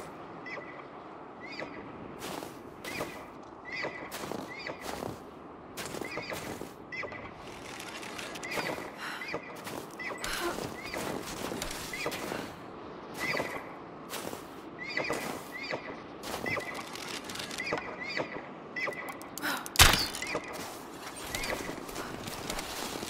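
Footsteps crunch slowly through deep snow.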